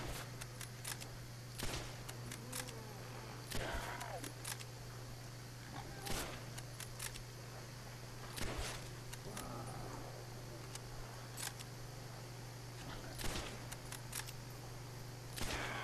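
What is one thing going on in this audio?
Zombies groan and growl nearby.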